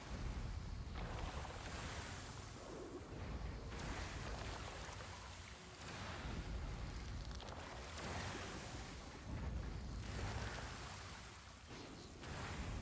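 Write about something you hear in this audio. A man talks calmly into a close headset microphone.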